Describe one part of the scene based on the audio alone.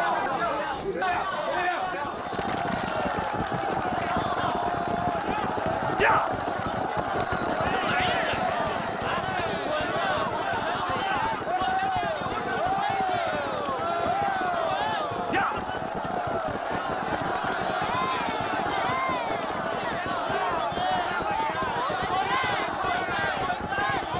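A crowd of men and women cheers and shouts excitedly.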